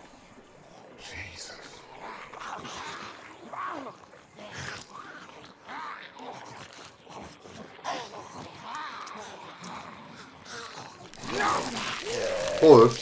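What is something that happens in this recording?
Zombies groan and growl outdoors.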